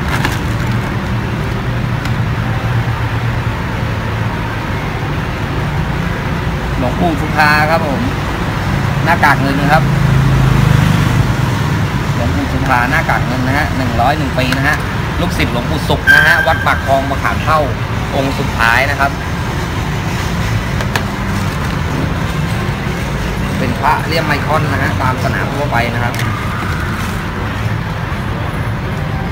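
Plastic packets rustle and click as they are handled.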